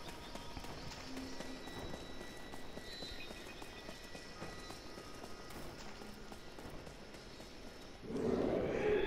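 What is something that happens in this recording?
Quick footsteps patter over stone and grass.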